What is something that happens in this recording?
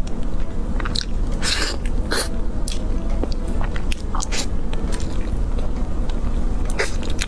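A young woman eats soft cake close to a microphone, with wet chewing and smacking sounds.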